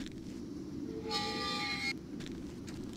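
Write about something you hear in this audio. A metal gate creaks open.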